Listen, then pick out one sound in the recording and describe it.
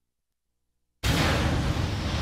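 Electricity crackles and roars loudly.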